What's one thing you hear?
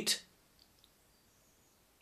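A man sips a drink.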